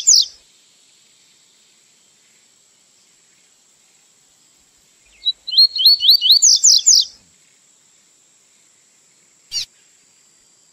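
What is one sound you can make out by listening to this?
A small songbird sings a quick series of high, rising whistled notes.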